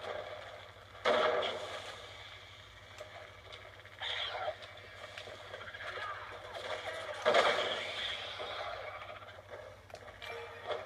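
Footsteps run across a hard floor, heard through a television speaker.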